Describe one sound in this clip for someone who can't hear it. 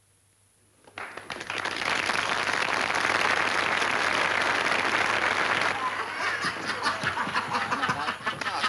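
A large audience claps and cheers in a big hall.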